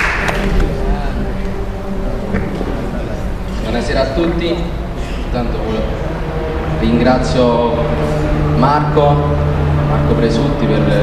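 A young man speaks into a microphone in a large room.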